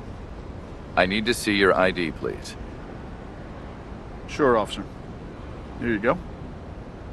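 A young man speaks calmly in short phrases.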